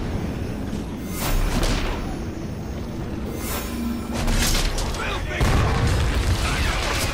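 Fiery blasts burst with loud booms.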